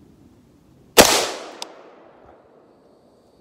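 A rifle fires a single loud shot that echoes outdoors and slowly fades.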